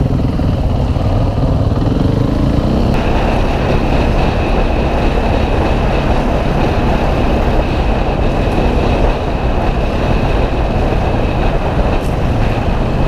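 Wind rushes loudly past the rider.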